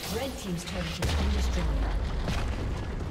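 A tower explodes with a deep, booming blast.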